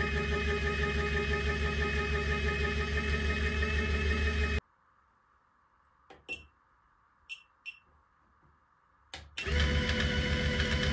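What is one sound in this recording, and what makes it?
A motorized toy hums and buzzes loudly, then cuts out and later starts again.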